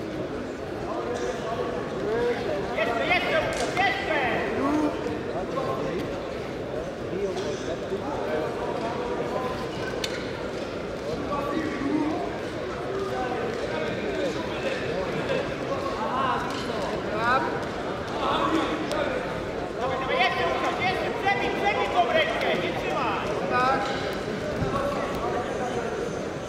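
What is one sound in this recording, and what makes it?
Wrestlers' shoes squeak on the mat.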